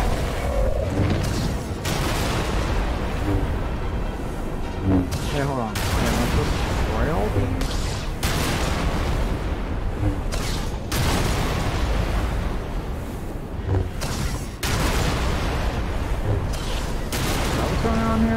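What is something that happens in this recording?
Lightsabers hum and clash in a fast fight.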